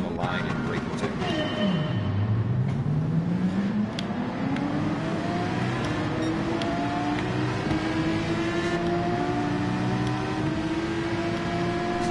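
A racing car engine revs up and climbs through the gears.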